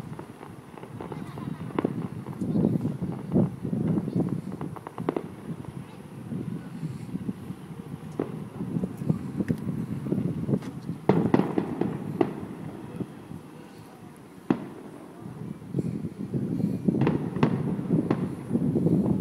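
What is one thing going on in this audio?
Fireworks boom and crackle far off.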